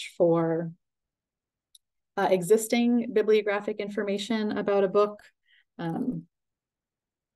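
A woman speaks calmly through a computer microphone.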